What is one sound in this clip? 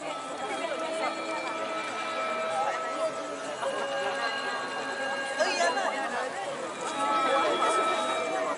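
A large ensemble of bronze gongs and metallophones plays a shimmering, ringing melody.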